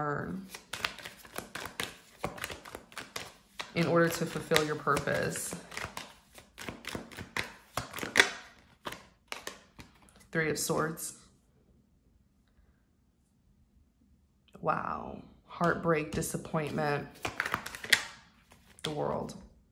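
A deck of cards is shuffled with quick flicking clicks.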